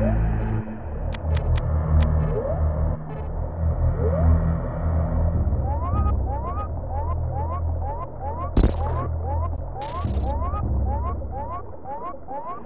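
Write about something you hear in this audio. Loud video game music with a heavy, throbbing bass plays throughout.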